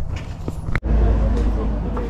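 Several adults talk quietly in the background.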